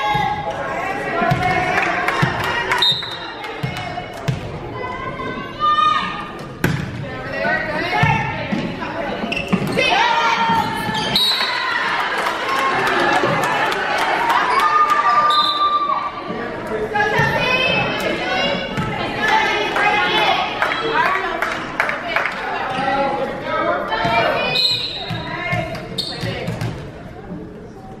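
A volleyball is smacked by hands with sharp thuds.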